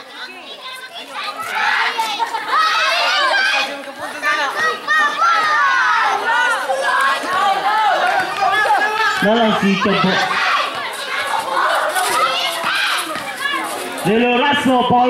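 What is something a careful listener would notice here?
A crowd of young spectators cheers and shouts loudly outdoors.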